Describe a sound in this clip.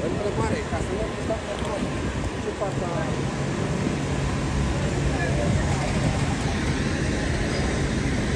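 A crowd of men and women talk excitedly nearby, outdoors.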